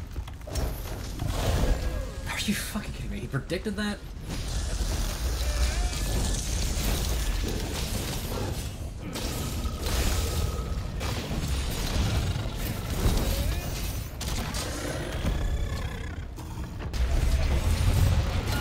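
A huge monster stomps heavily.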